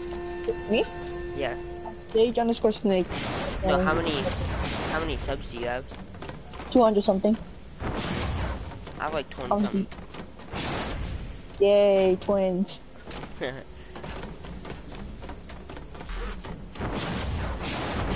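Sharp hits and clashing effects from a video game fight ring out again and again.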